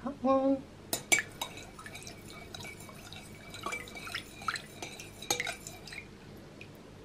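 A fork whisks rapidly against a glass bowl, clinking.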